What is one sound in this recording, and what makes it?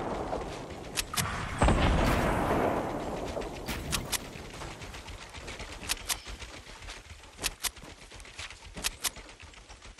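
Game footsteps tap quickly on a wooden floor.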